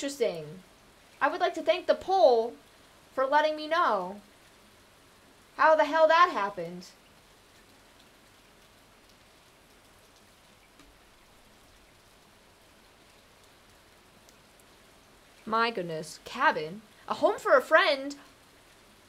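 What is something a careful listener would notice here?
A young woman talks casually into a nearby microphone, in bursts with pauses.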